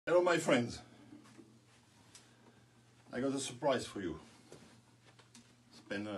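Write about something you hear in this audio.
A middle-aged man speaks with animation close to the microphone.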